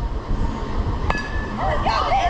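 A metal bat cracks against a ball.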